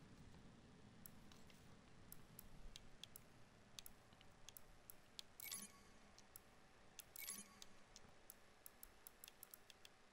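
Soft menu clicks tick quickly as a selection moves along.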